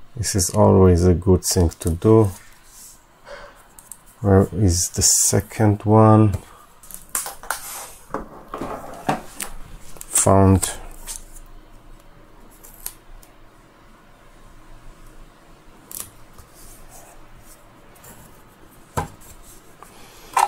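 Plastic parts click and rattle as they are handled.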